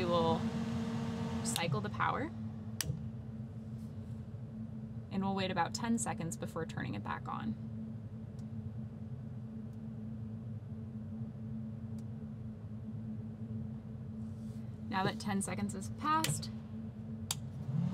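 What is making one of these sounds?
A switch clicks as it is flipped.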